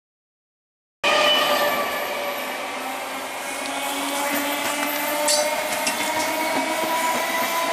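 An electric train rumbles and clatters past on the tracks.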